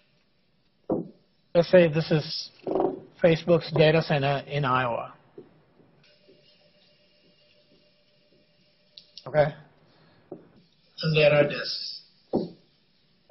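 A man lectures through a microphone, speaking calmly with pauses.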